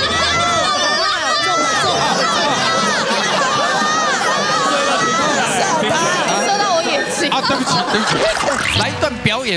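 Several women talk and laugh with animation through microphones.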